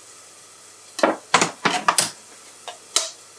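A knife blade taps sharply against an eggshell.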